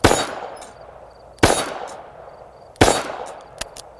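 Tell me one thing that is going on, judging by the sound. A handgun fires loud shots outdoors, each echoing briefly.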